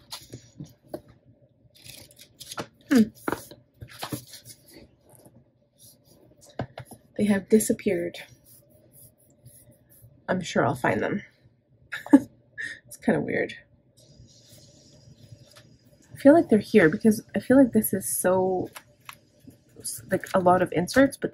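Paper pages flip and rustle.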